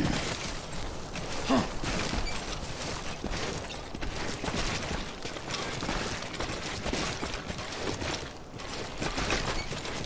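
Footsteps scrape and crunch on loose rock.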